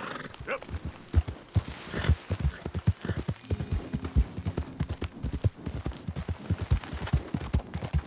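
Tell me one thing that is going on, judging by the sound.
Horse hooves gallop steadily over soft ground.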